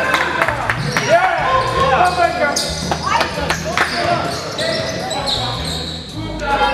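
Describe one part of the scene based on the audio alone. A basketball bounces on the court with an echo.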